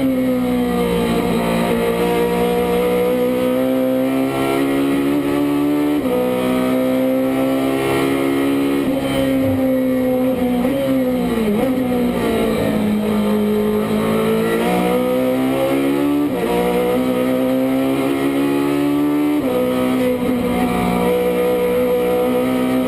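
A racing car engine roars loudly from inside the cabin, its pitch rising and dropping sharply with each gear change.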